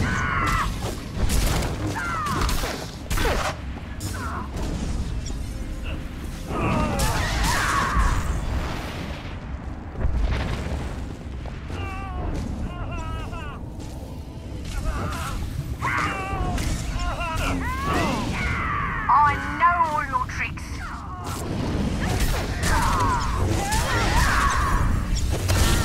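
Energy blasts zap and crackle.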